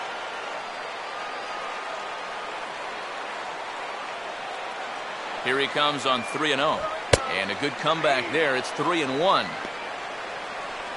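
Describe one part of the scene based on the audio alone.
A crowd murmurs steadily in a large stadium.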